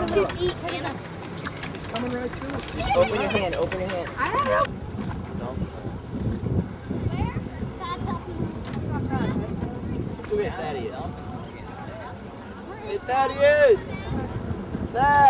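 Adults shout and call out across the water at a distance.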